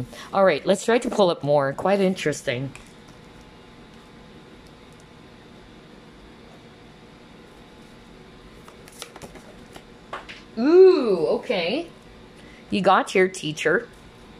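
A card slides and taps softly on a wooden table.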